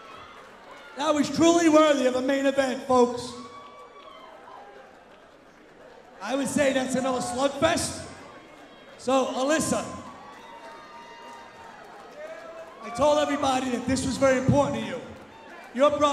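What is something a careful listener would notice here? A man announces loudly through a microphone and loudspeakers in a large echoing hall.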